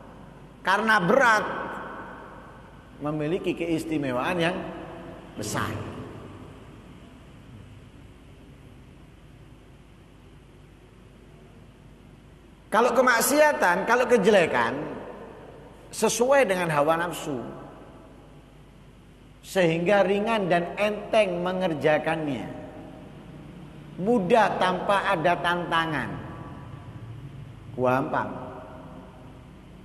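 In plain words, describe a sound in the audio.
A man speaks with animation into a microphone in a reverberant hall, pausing between phrases.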